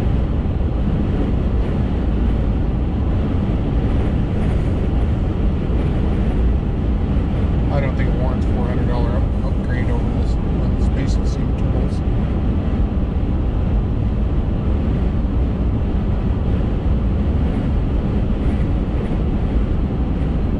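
A car's engine hums steadily as it drives on a road.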